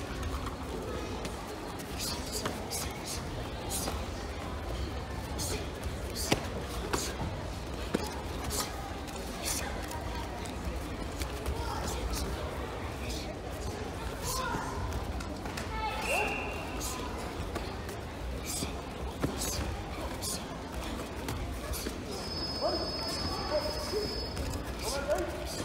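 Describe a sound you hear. Padded strikes thud repeatedly.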